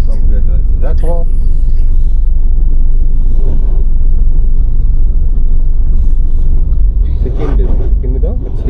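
A car rumbles steadily along a road, heard from inside.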